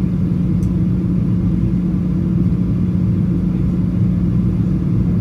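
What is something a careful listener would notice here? A plane's engines drone in a steady, low roar from inside the cabin.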